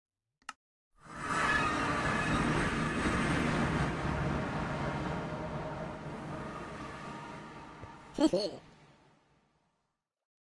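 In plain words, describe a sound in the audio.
A loud magical whoosh swells and slowly fades.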